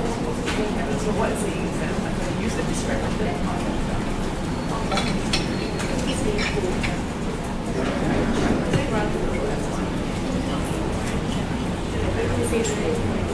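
A man talks steadily to an audience through a microphone.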